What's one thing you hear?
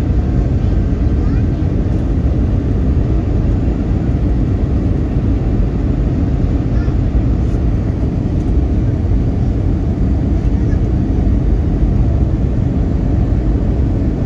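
A jet engine roars steadily and loudly, heard from inside an airliner cabin.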